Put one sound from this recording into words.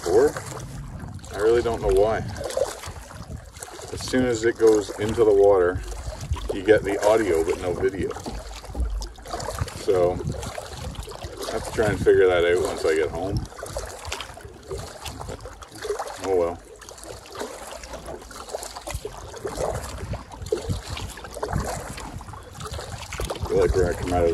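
A paddle splashes in water.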